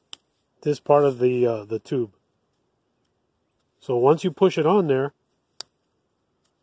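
Fingers turn a plastic pipe fitting with a faint click.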